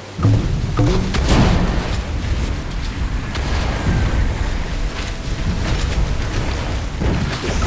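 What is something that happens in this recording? A boat engine roars steadily.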